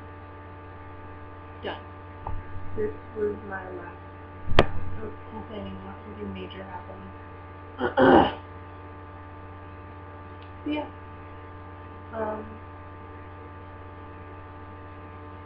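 A steady low electrical hum runs throughout.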